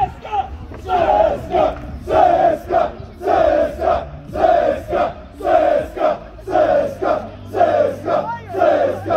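A crowd of fans chants loudly in rhythm close by, outdoors.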